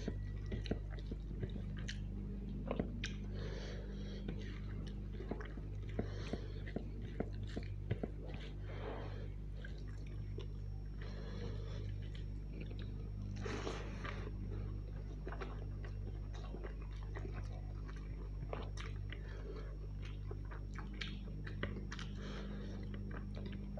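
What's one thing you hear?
A man chews wetly close to the microphone.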